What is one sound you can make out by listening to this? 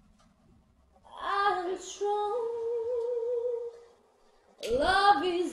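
A young woman sings in a wavering voice.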